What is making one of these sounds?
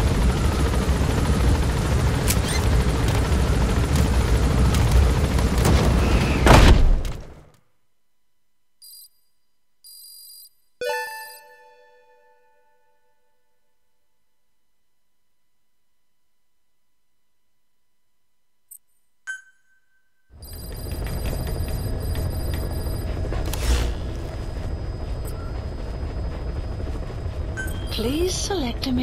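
A helicopter roars steadily from inside its cabin.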